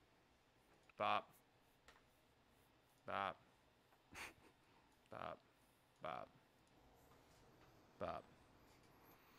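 A young man makes short, sharp bursts of sound with his mouth close to a microphone.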